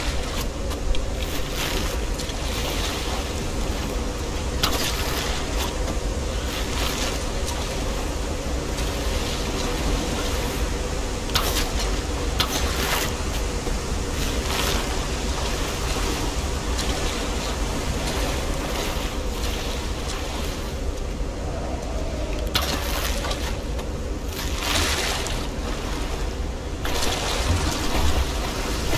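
Rough water rushes and churns steadily.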